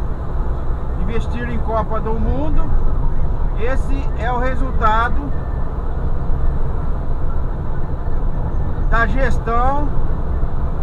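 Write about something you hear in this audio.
A vehicle's engine hums and its tyres rumble steadily on the road.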